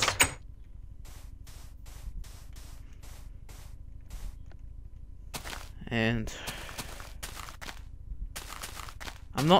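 Footsteps crunch steadily on sand and grass.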